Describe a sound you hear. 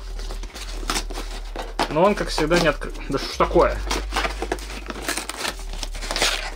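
Cardboard packaging crinkles and rustles as it is pried open.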